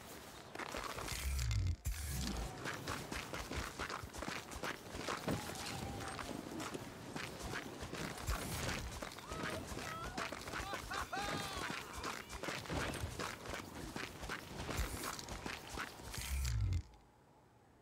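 Footsteps crunch on snow and rock.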